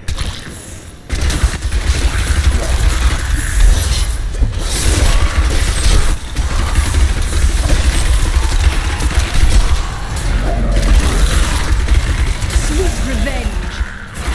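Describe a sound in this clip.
Bones clatter as skeletons are smashed.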